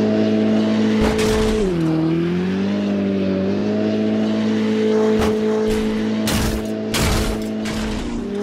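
A car body crashes and thuds against the ground.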